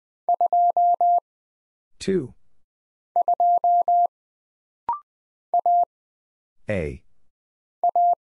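Morse code beeps in short and long bursts of a steady tone.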